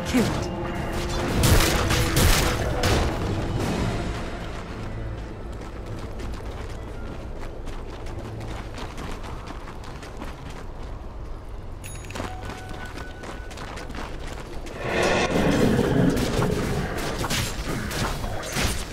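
Video game battle effects clash and crackle.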